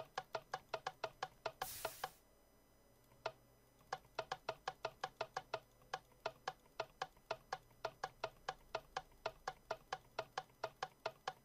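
A mechanism clicks rapidly in a steady rhythm.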